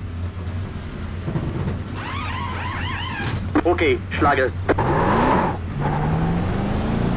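A race car engine drones steadily and then revs higher.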